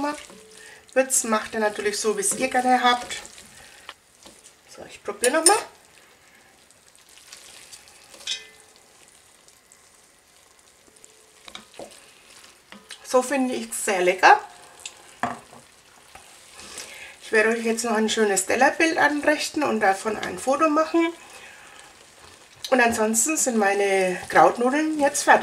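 A wooden spoon stirs thick pasta in a pot.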